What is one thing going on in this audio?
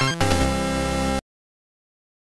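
Chiptune game music plays with bright electronic notes.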